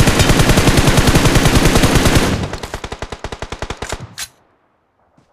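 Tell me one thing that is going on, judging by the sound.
Rapid automatic gunfire rattles loudly, then slows into bursts.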